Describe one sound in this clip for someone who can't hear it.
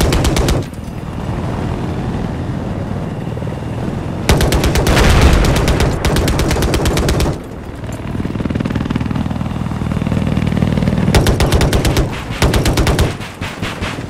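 A rapid-firing cannon fires in loud bursts.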